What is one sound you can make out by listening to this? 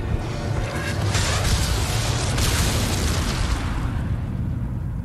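An explosion bursts with a loud roar and crackling.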